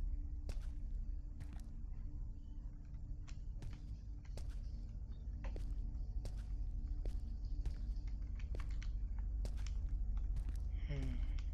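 Footsteps tread slowly across a wooden floor indoors.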